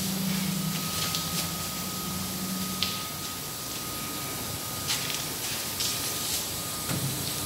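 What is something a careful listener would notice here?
Metal foil rustles and crinkles.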